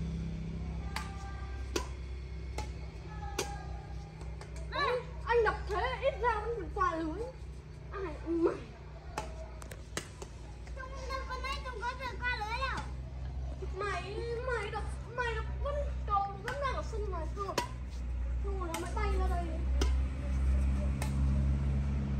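A badminton racket strikes a shuttlecock with sharp taps.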